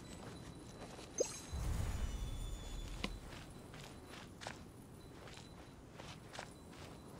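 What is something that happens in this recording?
Footsteps run steadily over soft ground.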